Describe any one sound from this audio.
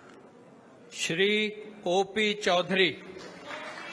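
A man speaks loudly and formally into a microphone.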